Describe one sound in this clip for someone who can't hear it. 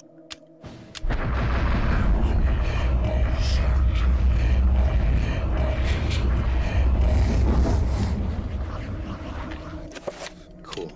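A low droning rumble fills the air.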